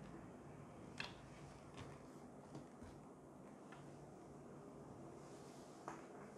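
A studio lamp knocks and clicks softly as it is turned.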